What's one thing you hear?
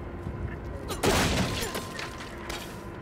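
A wooden crate smashes and splinters.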